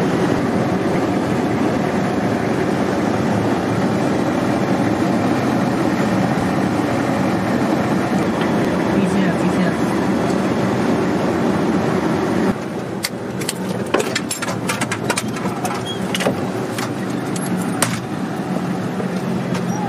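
A vehicle's engine rumbles loudly and steadily from inside the cab, then drops quieter.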